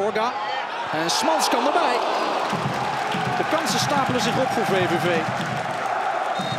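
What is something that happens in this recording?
A large stadium crowd roars and cheers loudly outdoors.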